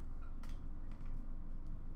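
Trading cards tap softly against a stack.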